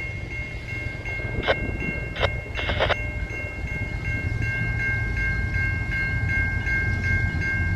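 A train rumbles in the distance as it slowly approaches on the tracks.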